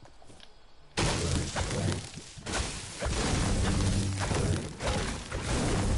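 A pickaxe strikes wood with repeated thuds and cracks.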